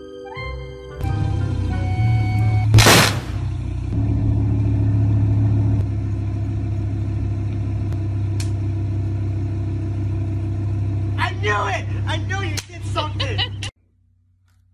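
A sports car engine idles and revs loudly.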